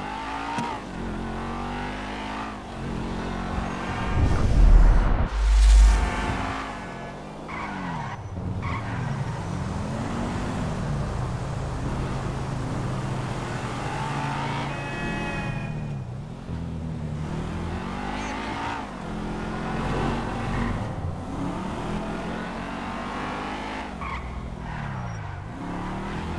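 A car engine revs and roars as the car speeds along.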